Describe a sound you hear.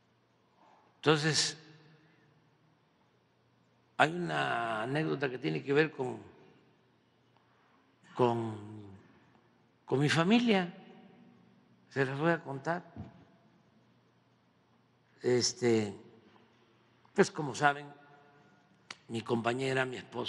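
An elderly man speaks slowly and deliberately through a microphone, with long pauses between phrases.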